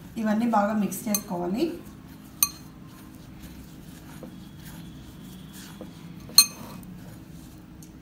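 A hand rubs and squeezes dry flour in a glass bowl.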